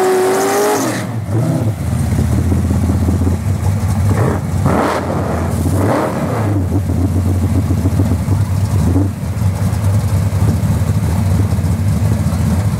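A loud engine rumbles and idles roughly close by.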